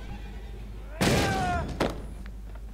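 A wooden door creaks as it swings open.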